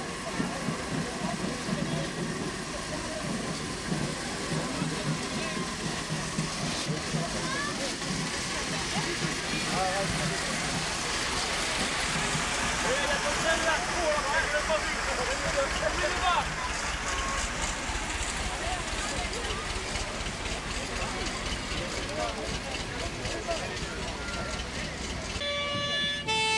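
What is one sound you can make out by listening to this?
A crowd of men and women chatters outdoors.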